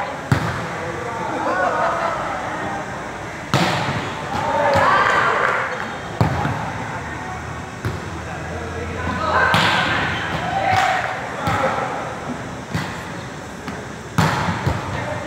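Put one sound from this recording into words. A volleyball smacks sharply off hands and arms.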